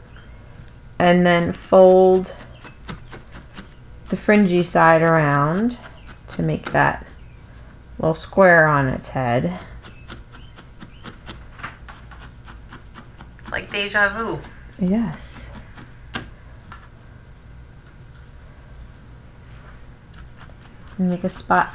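A felting needle ticks in quick jabs into wool.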